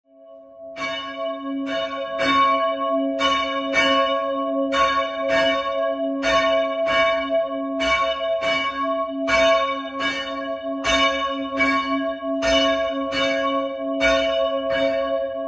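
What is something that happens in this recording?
Church bells ring in a steady, repeating peal.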